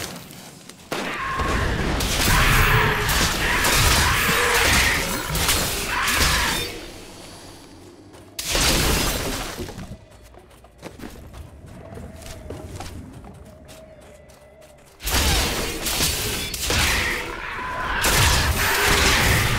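Game combat sounds crash and explode in bursts.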